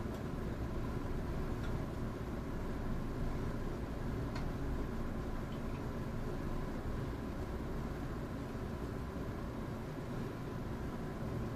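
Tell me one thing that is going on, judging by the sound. An electric express train rolls slowly along the track, heard from inside the carriage.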